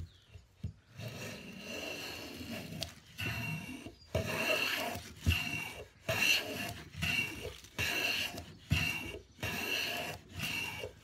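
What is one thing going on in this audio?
A hand plane shaves wood in repeated strokes.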